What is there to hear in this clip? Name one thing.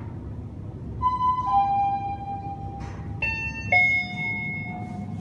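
A lift chime rings out in bright tones on arrival.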